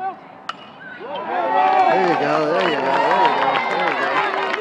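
A young man cheers and shouts.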